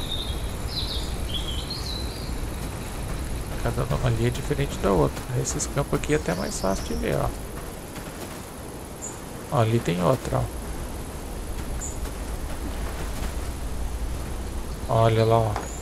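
Tall dry grass rustles as someone wades through it.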